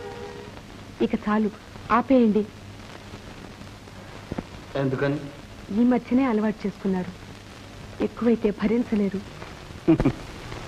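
A young woman speaks gently and clearly, close by.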